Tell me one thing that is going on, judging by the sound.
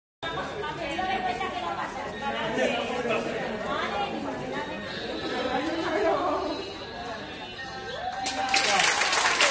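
Several men and women talk at once nearby.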